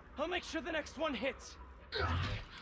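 A man speaks excitedly, close by.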